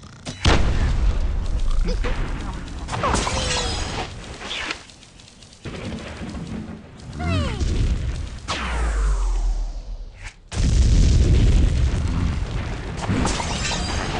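Wooden and stone blocks crash and tumble down.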